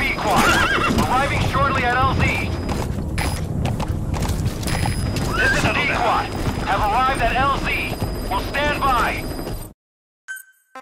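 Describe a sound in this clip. Hooves gallop over hard ground.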